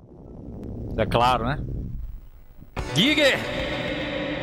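A monster shrieks loudly.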